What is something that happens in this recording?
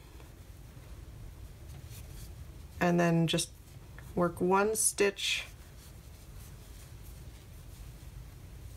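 Yarn rustles softly as a hook pulls it through stitches.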